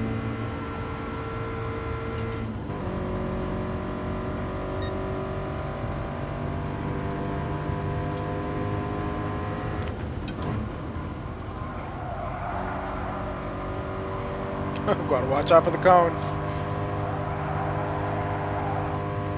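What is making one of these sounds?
A racing car engine drones steadily and changes pitch as gears shift.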